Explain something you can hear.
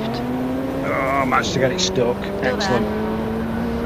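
Another racing car roars past close by.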